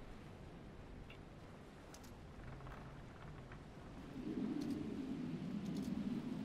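Waves wash and splash against a ship's hull.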